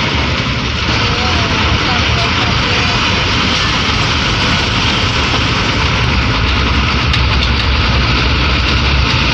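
A bus engine roars steadily while driving.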